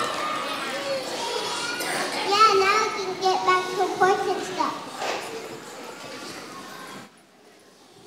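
A young girl sings through a microphone in a large echoing hall.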